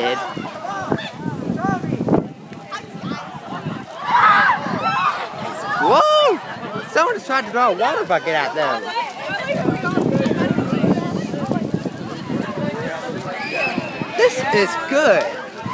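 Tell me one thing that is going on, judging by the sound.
A crowd of young people chatters and calls out nearby outdoors.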